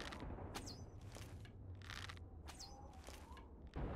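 An arrow whooshes off a bowstring.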